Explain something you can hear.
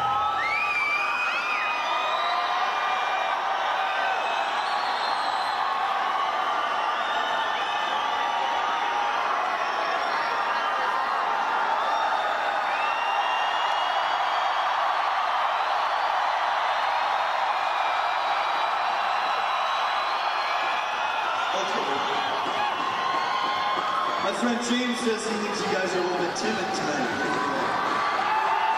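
A large crowd cheers and whistles loudly in a big echoing arena.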